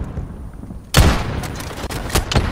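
A rifle fires sharp shots nearby.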